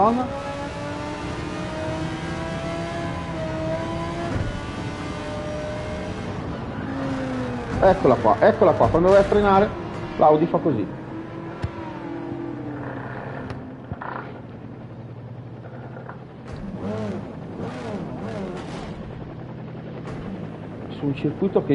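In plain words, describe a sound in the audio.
A racing car engine revs and roars.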